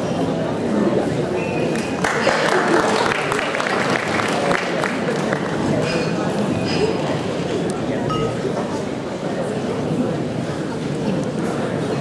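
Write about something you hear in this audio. A microphone stand clatters and knocks as it is adjusted.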